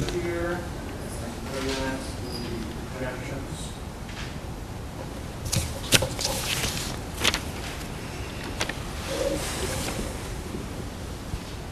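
Paper rustles and crinkles as pages are handled.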